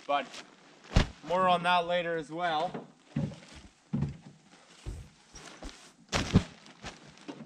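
A soft, bulky bundle thumps onto the ground.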